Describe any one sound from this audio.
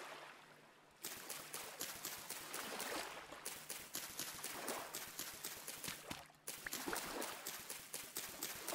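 Reeds crunch and rustle in quick repeated strokes as they are cut down.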